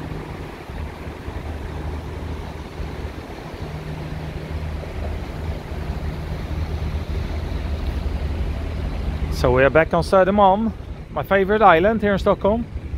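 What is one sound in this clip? A bus engine idles nearby with a steady low rumble.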